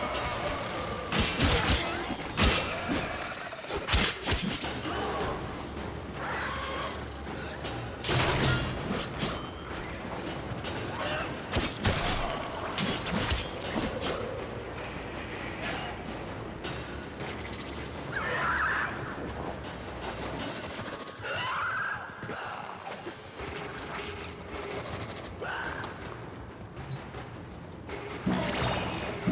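Energy weapons fire in sharp bursts.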